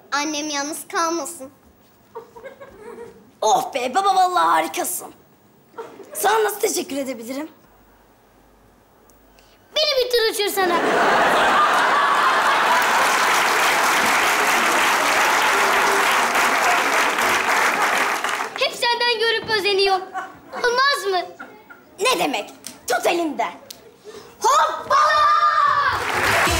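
A young boy speaks with animation.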